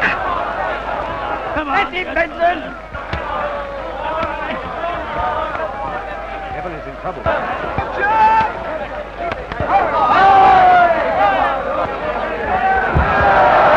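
A crowd of men shouts and cheers loudly.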